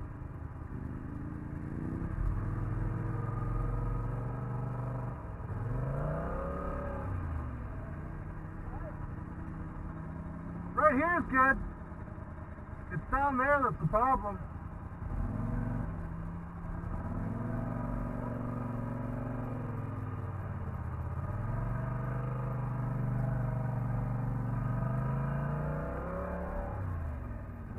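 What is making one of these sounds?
A quad bike engine drones and revs up and down close by.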